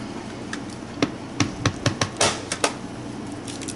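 A rubber stamp taps sharply against an ink pad.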